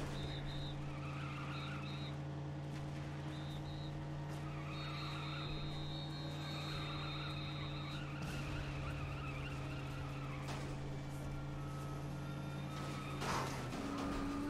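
A racing car engine hums steadily at speed.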